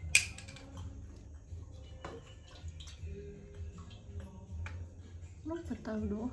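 Glass bottles clink together.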